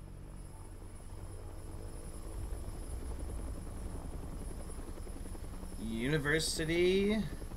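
A helicopter engine drones low and steady.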